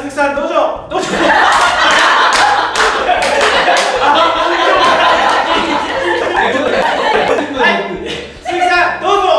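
A group of people laughs loudly together.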